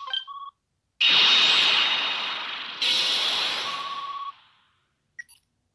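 A bright fanfare-like blast of effects rings out and dies away.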